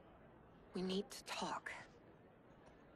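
A young woman speaks urgently, close by.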